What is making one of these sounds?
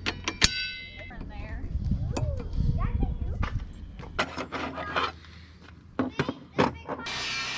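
Metal parts clatter and click.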